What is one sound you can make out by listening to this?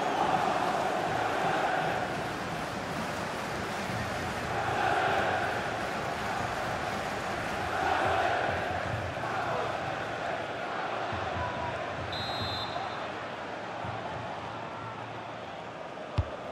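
A large stadium crowd roars and cheers steadily, swelling now and then.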